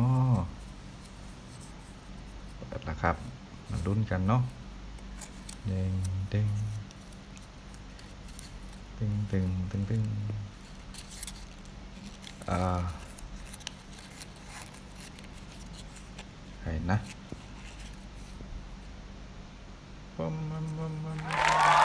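Paper crinkles softly as fingers unfold it.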